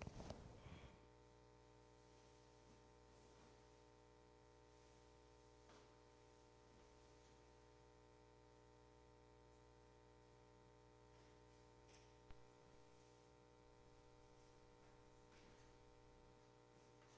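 An organ holds a soft, steady chord in an echoing room.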